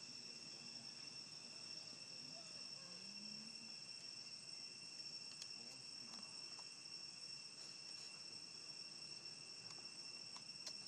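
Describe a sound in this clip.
A small monkey chews and nibbles on a leafy stalk.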